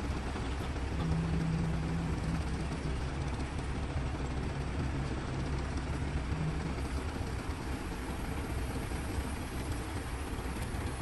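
A crane's hydraulics whine as the boom lifts a load of bricks.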